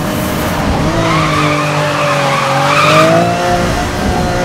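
Tyres screech while a car drifts around a bend.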